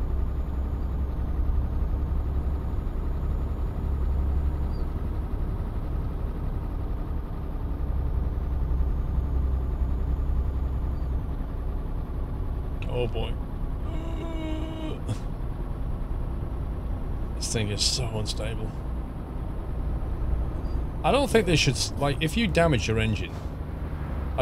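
A truck engine drones low and steady.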